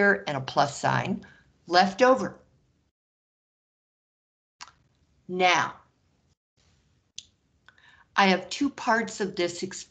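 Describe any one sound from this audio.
A woman explains calmly through a microphone, with pauses.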